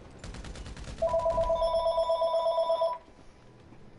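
A bright electronic chime rings out.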